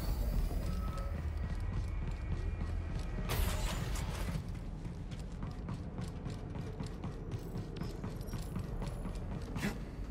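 Quick footsteps patter on a hard floor.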